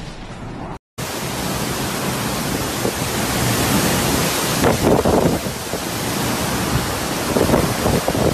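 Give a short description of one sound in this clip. Strong wind roars loudly through trees outdoors.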